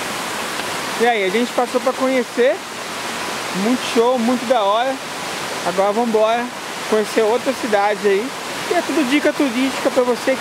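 A young man talks close up with animation.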